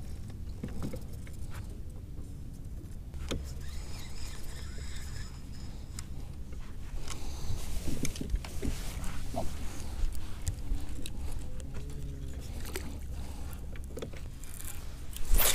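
A fishing reel clicks and whirs as line is wound in.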